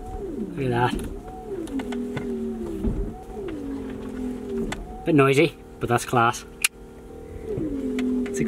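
A car engine idles and revs up and down repeatedly.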